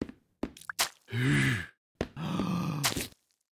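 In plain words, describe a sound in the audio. A young man groans.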